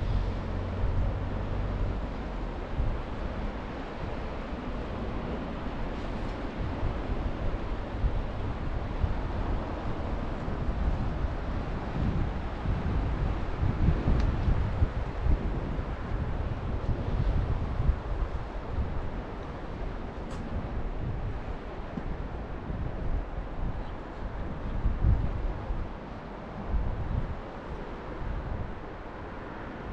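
Wind gusts and buffets loudly outdoors.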